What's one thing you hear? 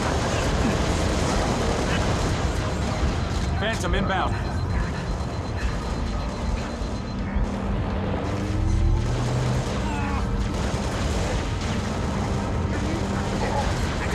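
Rapid gunfire rattles in a game.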